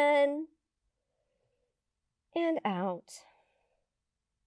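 A woman speaks calmly and clearly into a close microphone, with short pauses.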